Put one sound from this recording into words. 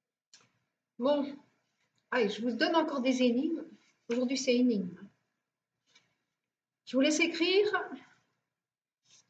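A woman speaks calmly, close by, in short phrases.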